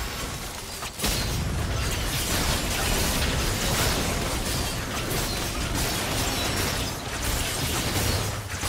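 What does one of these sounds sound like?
Game characters clash with sharp hits during a fight.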